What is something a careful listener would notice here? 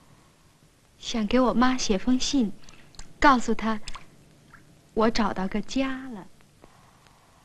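A young woman speaks quietly and earnestly, close by.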